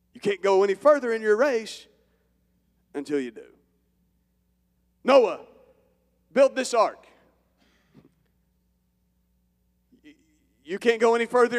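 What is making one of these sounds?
A man speaks with animation into a microphone through loudspeakers in a large hall, with pauses between phrases.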